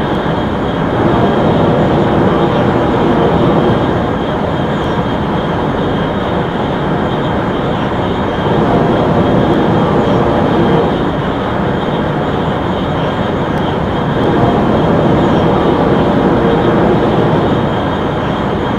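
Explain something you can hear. A train's roar grows louder and more booming as it passes through a tunnel.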